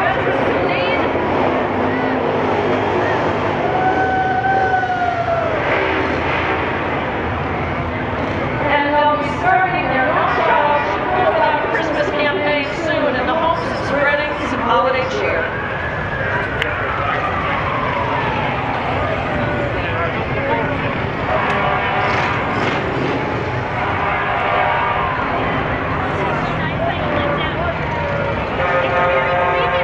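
A crowd of people chatters and cheers outdoors along a street.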